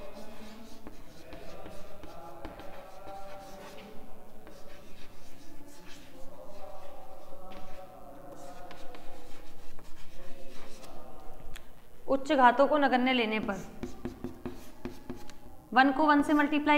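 A young woman speaks steadily, as if explaining a lesson.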